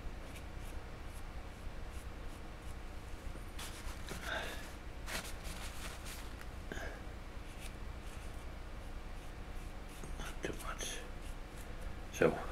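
A pen taps lightly on a hard surface.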